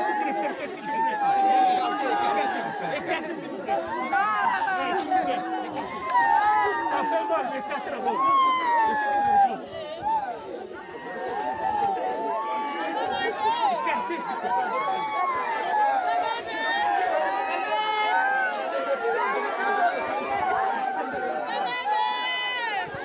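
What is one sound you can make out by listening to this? A crowd of men and women talk and call out loudly outdoors, close by.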